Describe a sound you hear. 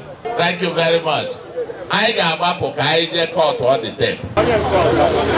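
A man speaks loudly through a microphone outdoors.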